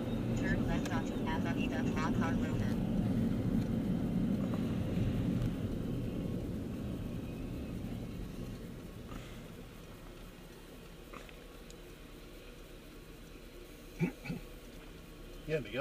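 Road noise rumbles steadily inside a moving car, then grows quieter as the car slows down.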